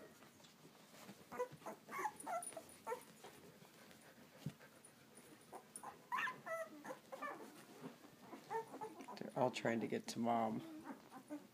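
A newborn puppy squeaks and whimpers up close.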